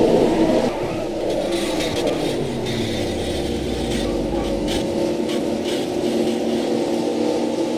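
A truck scrapes and crashes as it tumbles along the track.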